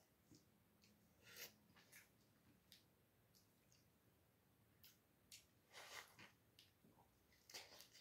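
A man bites into an orange and slurps it close by.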